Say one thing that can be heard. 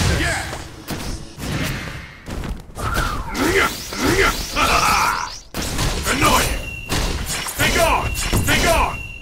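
Punches and kicks land with sharp smacking hits.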